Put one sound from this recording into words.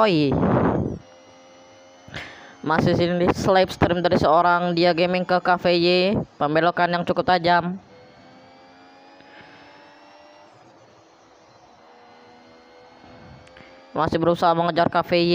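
A racing car engine whines at high revs, its pitch rising and falling with speed.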